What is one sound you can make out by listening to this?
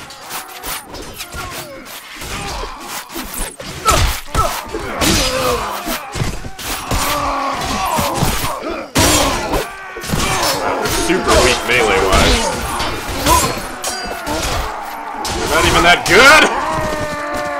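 Steel blades clash and clang in a fierce melee.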